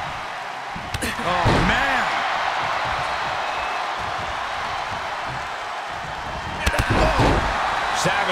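Heavy thuds of bodies hitting a wrestling mat ring out.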